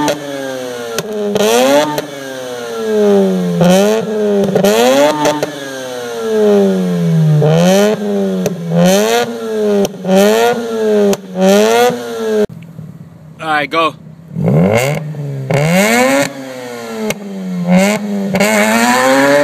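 A car exhaust pops and crackles between revs.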